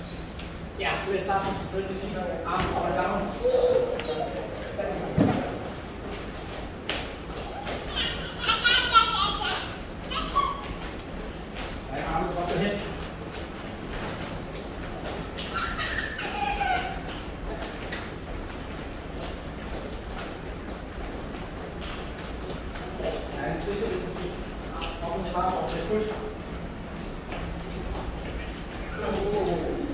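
Sneakers shuffle and thud on a hard floor.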